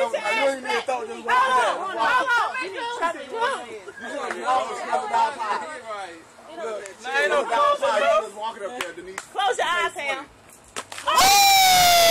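Women and girls chatter and laugh close by.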